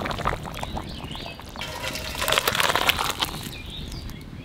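A thick curry pours and slops from a pan into a bowl.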